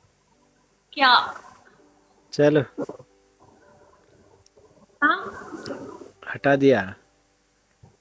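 A young woman talks over an online call.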